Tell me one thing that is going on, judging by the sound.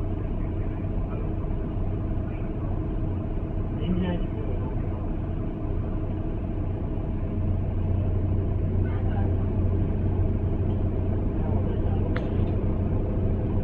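A bus engine hums low and steady while the bus rattles along.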